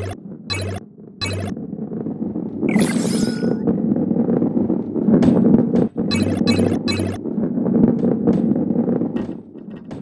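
A ball rumbles steadily as it rolls along a wooden track.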